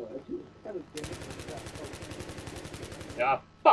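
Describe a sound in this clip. A rifle fires a rapid, steady burst of shots.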